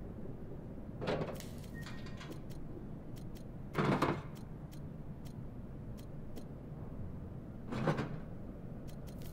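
Items thud softly as they are dropped into a box.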